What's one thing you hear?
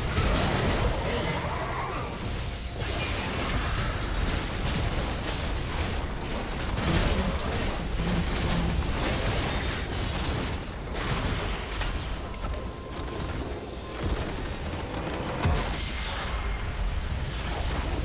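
Magic blasts and weapon strikes clash in a busy battle.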